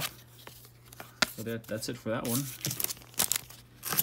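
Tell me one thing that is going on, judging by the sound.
Paper rustles as it is handled.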